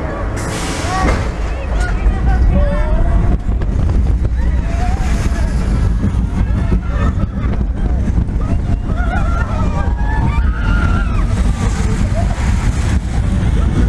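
A roller coaster train roars down the track and through turns.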